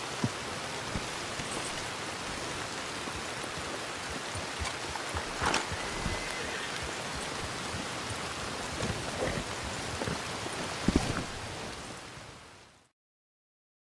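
Hooves thud on soft ground as a horse walks.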